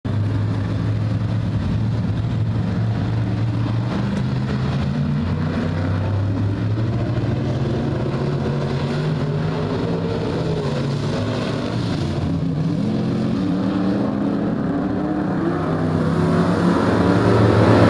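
Race car engines roar loudly around a track, revving up and down.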